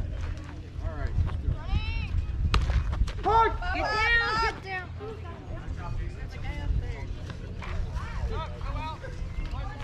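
Young players shout and cheer from across an open field.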